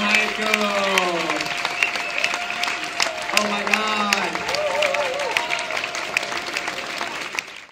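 A small jazz band plays lively swing music with horns, bass and drums.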